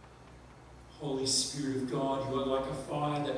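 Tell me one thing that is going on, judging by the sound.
A middle-aged man speaks calmly into a microphone in a large echoing room.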